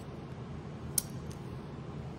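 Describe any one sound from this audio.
A plastic part clicks sharply as it is handled.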